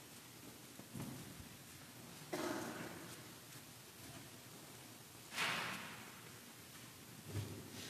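Metal chains clink and rattle as a censer swings in a large echoing hall.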